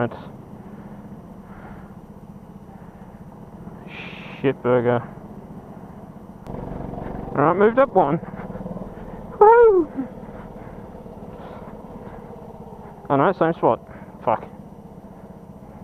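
A go-kart engine hums steadily close by.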